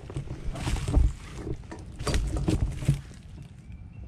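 Branches and dry leaves rustle as someone pushes through brush.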